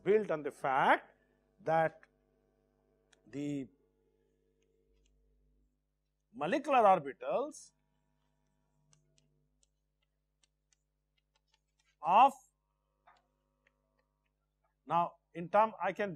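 An older man speaks calmly in short phrases, with long pauses.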